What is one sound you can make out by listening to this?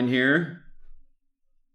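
A young man speaks briefly and clearly into a microphone.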